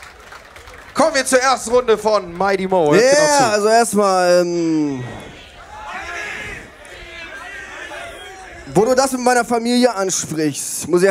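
A man raps forcefully into a microphone over a loudspeaker.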